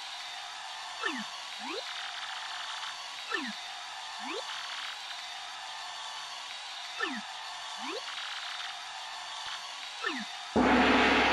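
Short sliding chirps pop up again and again.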